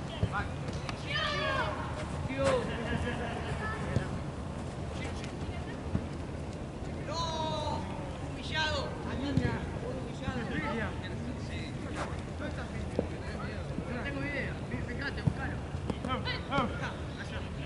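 Young men shout to each other across an outdoor field.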